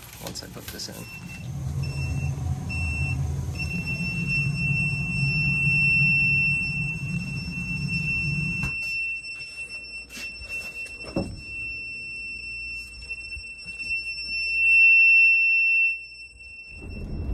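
A gas meter beeps with a steady, high alarm tone.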